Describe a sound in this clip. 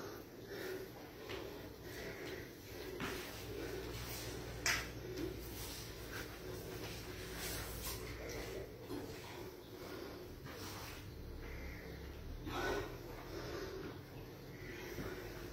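Sneakers thump and shuffle on a floor mat.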